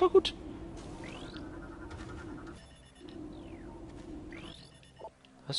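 Short electronic chirps sweep upward.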